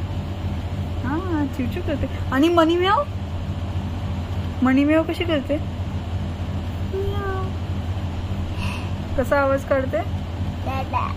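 A young woman speaks softly and playfully to a child close to the microphone.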